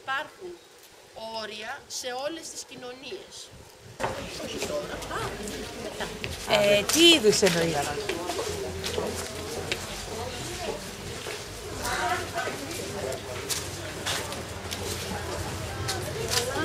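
Men and women chatter in a crowd outdoors.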